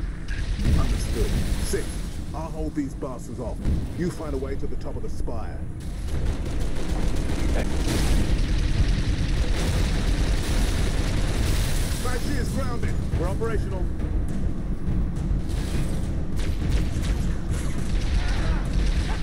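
Energy blasts crackle and burst nearby.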